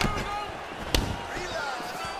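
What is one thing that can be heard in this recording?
A kick lands with a sharp thud.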